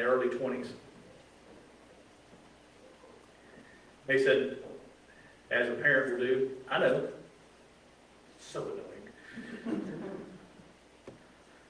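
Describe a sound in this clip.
A man speaks slowly and earnestly into a microphone, with pauses, in a room with a slight echo.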